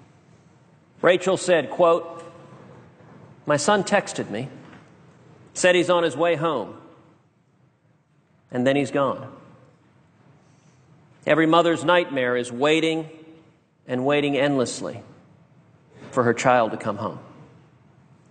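A man speaks slowly and gravely into a microphone, in short phrases with pauses.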